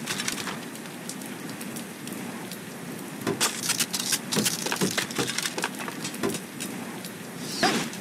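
Cartoon blocks thud and crash into place in a video game.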